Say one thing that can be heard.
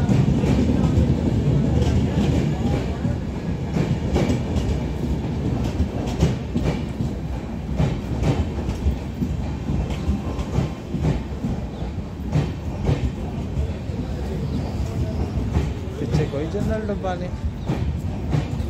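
A passenger train rumbles past close by, its wheels clattering over the rail joints.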